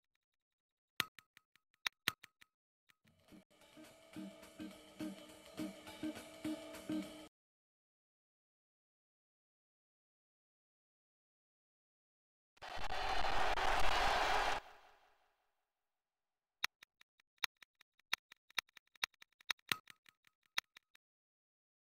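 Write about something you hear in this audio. Short electronic menu beeps sound in quick succession.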